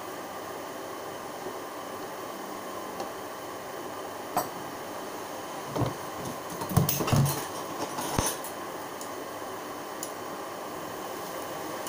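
Food sizzles softly in a frying pan.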